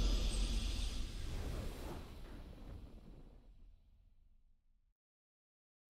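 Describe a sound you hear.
A video game's victory fanfare rings out and fades.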